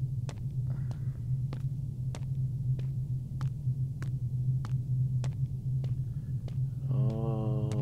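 Footsteps tap at a steady walking pace.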